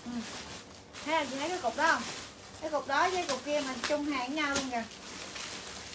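A young woman speaks lively and close by, in a high voice.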